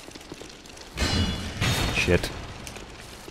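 A heavy weapon strikes with loud metallic clashes.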